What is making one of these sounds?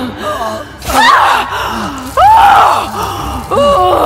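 A woman screams in pain.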